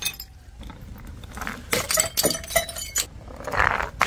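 A glass jar rolls and knocks on rough stone.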